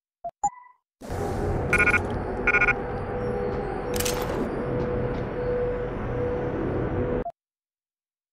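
A low steady mechanical hum drones, then cuts off abruptly.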